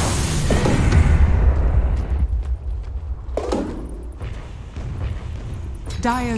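Fantasy battle sound effects whoosh and crackle over a deep rumble.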